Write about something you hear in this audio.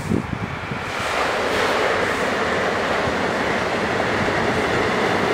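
An electric commuter train approaches along a viaduct.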